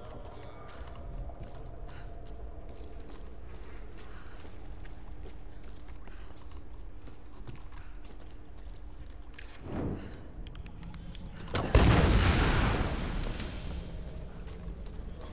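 Footsteps scuff over rocky ground.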